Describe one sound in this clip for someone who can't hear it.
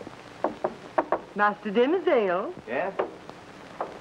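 A woman calls out loudly.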